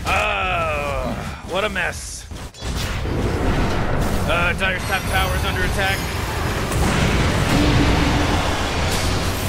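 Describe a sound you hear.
Game weapons clash and thud.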